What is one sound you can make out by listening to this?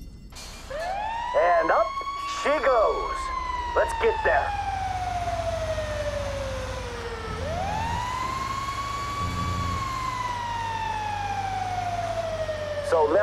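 A fire truck engine rumbles as it drives.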